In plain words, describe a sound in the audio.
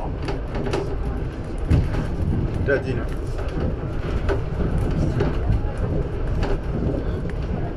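The wheels of a monorail car clatter over joints in the track.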